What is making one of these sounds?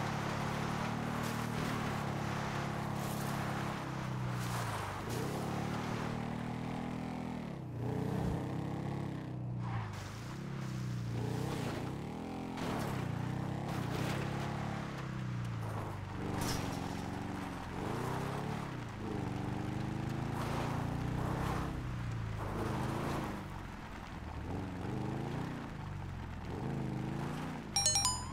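A motorbike engine revs up and down as it rides over rough ground.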